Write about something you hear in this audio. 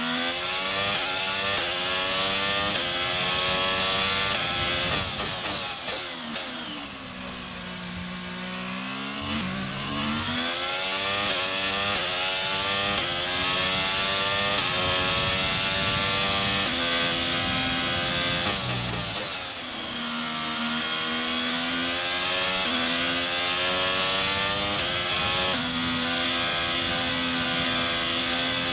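A racing car engine screams at high revs, shifting gears up and down as it brakes and accelerates.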